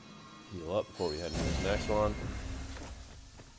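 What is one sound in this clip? A fire spell whooshes and crackles.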